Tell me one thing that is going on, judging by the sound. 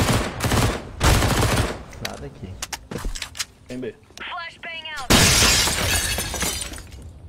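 Gunshots fire in quick bursts in a video game.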